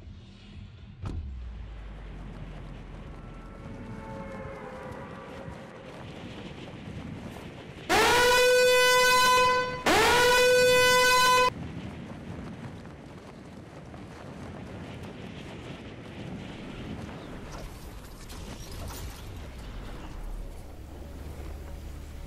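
Wind rushes steadily past during a fast fall through the air.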